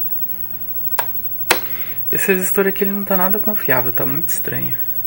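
A rotary switch clicks as it is turned.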